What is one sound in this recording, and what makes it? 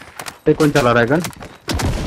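A rifle magazine clicks as it is changed.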